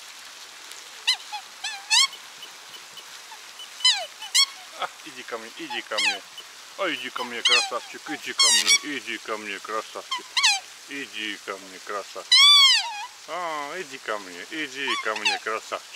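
Swans call with high, wavering, bugling honks, close by.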